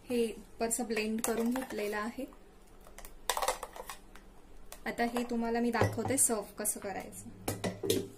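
A metal spoon scrapes and stirs inside a metal jar.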